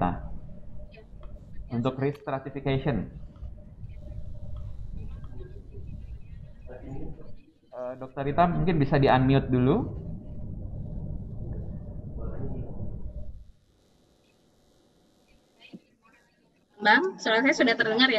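A man speaks over an online call, with pauses.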